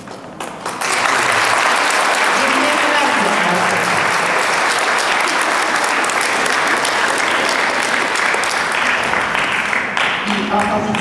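A crowd applauds and cheers loudly in a large echoing hall.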